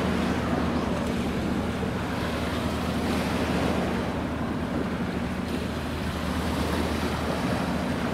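A small boat's motor whines past.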